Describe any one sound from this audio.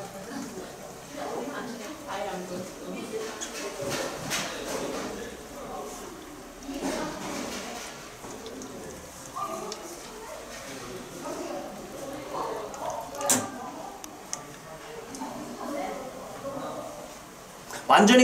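Beer trickles from a tap into a plastic bottle.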